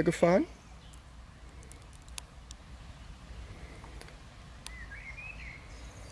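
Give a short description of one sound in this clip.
A small plastic button clicks a few times.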